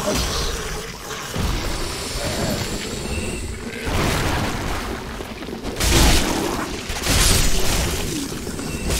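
Armoured footsteps crunch on stony ground.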